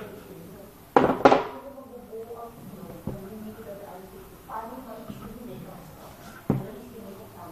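A clay bowl knocks against a hard surface.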